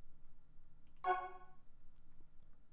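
A short bright electronic chime rings.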